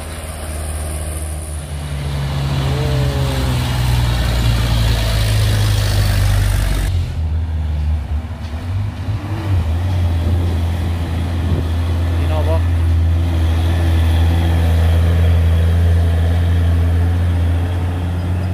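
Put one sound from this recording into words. Heavy truck engines rumble loudly as trucks drive past close by.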